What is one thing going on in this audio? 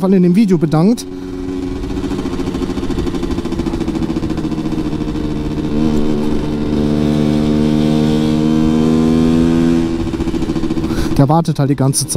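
A motorcycle engine hums steadily while cruising.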